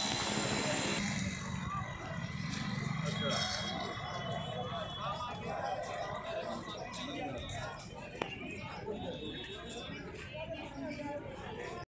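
A crowd of people chatters in a busy outdoor space.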